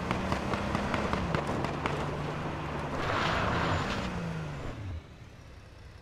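Tyres crunch and rumble over rough dirt ground.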